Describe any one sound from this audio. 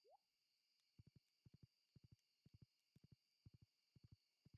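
Footsteps patter softly in a steady rhythm.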